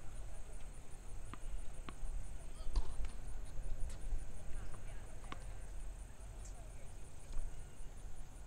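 A tennis ball bounces repeatedly on a hard court.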